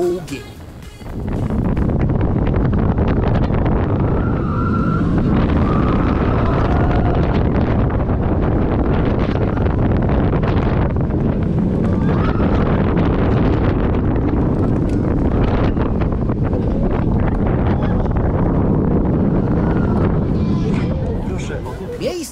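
A roller coaster train rumbles and clatters along its track.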